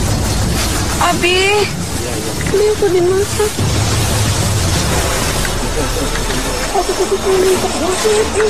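A child speaks in a high, shaky voice close by.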